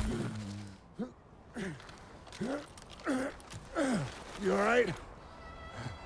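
A man asks a question in a low, strained voice.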